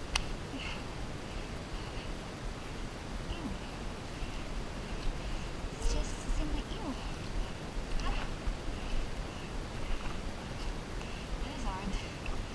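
Footsteps crunch on dry leaves along a trail.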